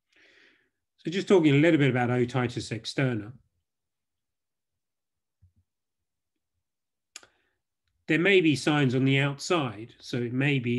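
A man speaks calmly in short phrases, heard through an online call microphone.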